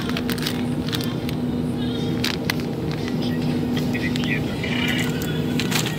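A plastic bag of shredded cheese crinkles in a hand.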